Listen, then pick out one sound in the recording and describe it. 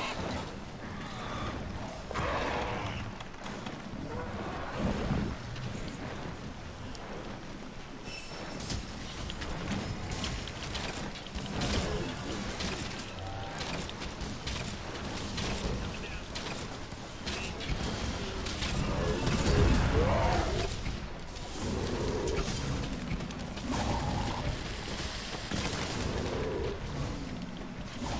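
Blades clash and slash in quick, sharp hits.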